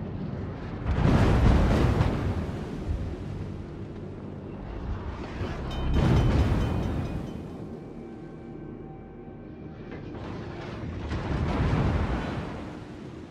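Heavy naval guns fire in deep booming blasts.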